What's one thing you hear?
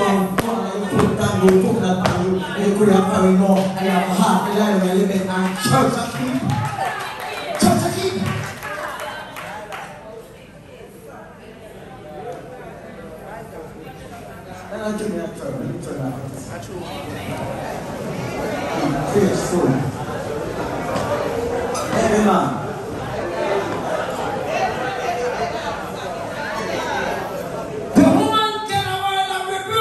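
A woman sings loudly through a microphone and loudspeakers in an echoing hall.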